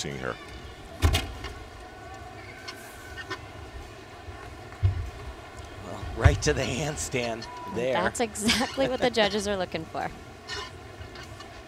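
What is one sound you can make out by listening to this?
Uneven bars thud and creak as a gymnast swings on them.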